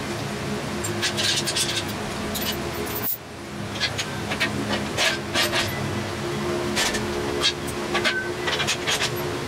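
A metal engine hoist rattles and clanks as it is rolled across a concrete floor.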